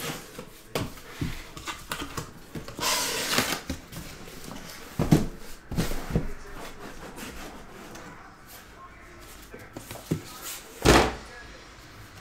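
Cardboard rustles and thumps as a box is opened and handled.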